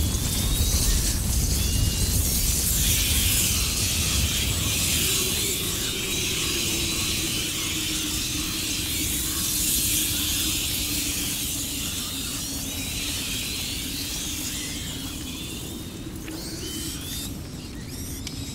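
A swarm of rats squeaks and scurries.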